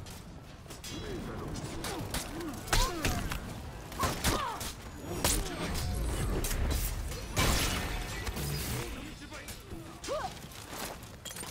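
Men shout and grunt loudly as they fight.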